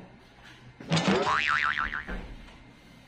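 A cloth squeaks as it rubs against window glass.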